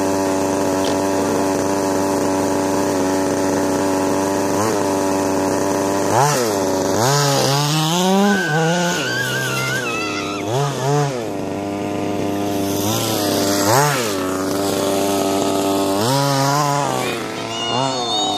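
A small model car engine whines steadily and revs up in bursts.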